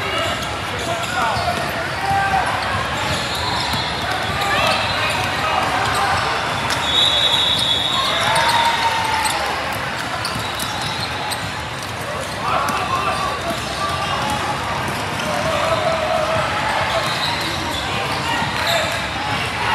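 Spectators chatter throughout a large echoing hall.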